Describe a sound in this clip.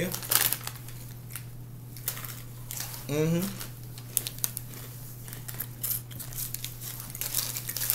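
A plastic wrapper crinkles and rustles in a man's hands.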